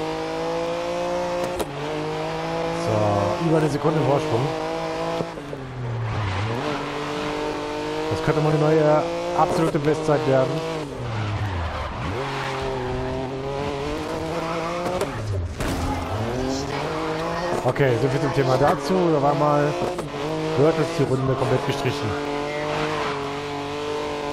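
A racing prototype engine screams, climbing through the gears and dropping as it brakes and downshifts.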